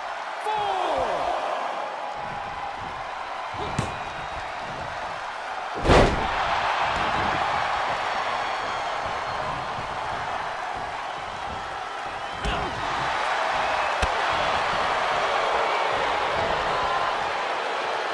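A large crowd cheers steadily in a big arena.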